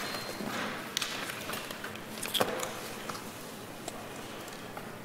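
A woman speaks quietly through a microphone.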